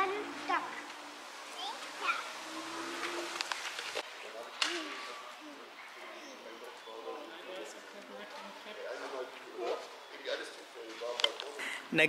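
Young children chatter quietly nearby.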